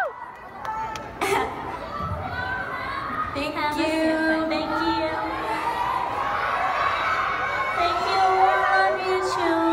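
A crowd cheers and screams.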